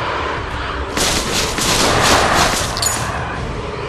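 A magic spell bursts with a loud rushing hiss.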